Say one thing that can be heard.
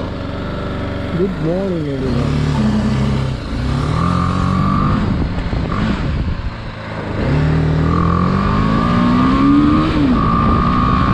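A motorcycle engine revs up and down as the bike speeds up.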